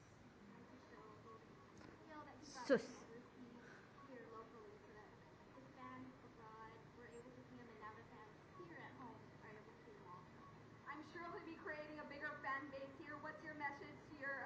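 A young woman speaks into a microphone with animation, heard through a television speaker.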